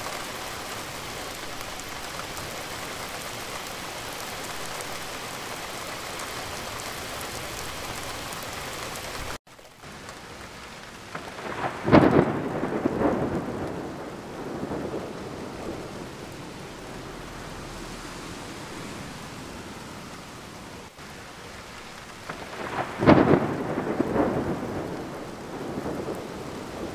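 Rain patters steadily on a window pane.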